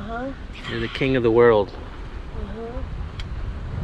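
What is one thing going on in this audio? An elderly woman speaks excitedly, close by.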